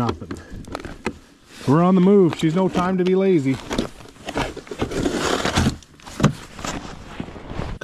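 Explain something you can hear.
A plastic case knocks and rattles as it is handled.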